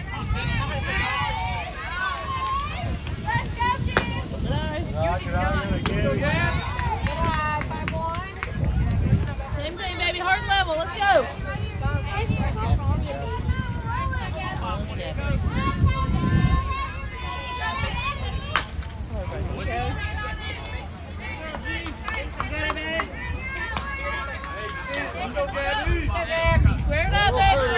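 Young women cheer and chant loudly at a distance outdoors.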